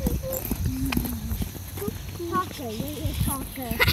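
Small footsteps patter on a paved path.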